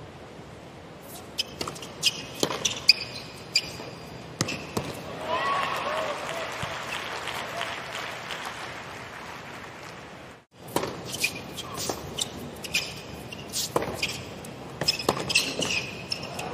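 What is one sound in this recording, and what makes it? A tennis ball is struck sharply back and forth by rackets.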